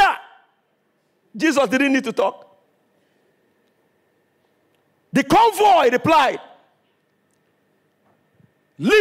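A man preaches with animation into a microphone, in short loud bursts with pauses.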